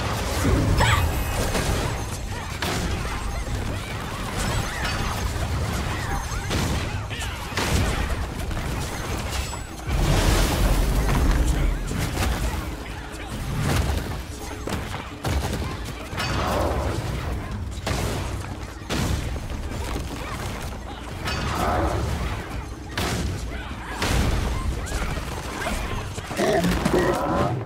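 Spell blasts and weapon strikes crash and boom again and again in a game battle.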